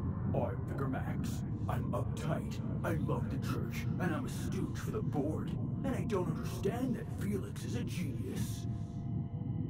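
A man speaks calmly and steadily.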